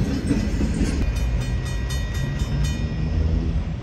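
A railway crossing bell rings rapidly.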